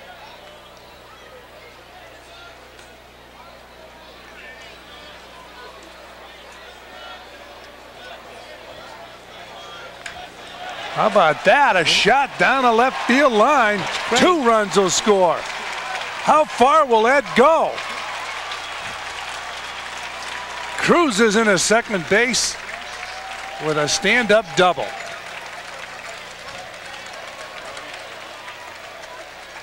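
A large crowd murmurs in an open stadium.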